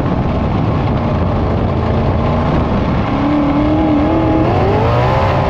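A race car engine roars loudly up close and revs higher as it accelerates.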